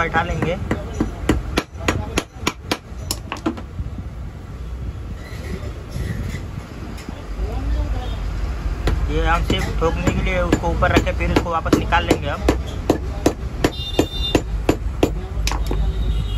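A metal hammer strikes a metal part in sharp, repeated blows.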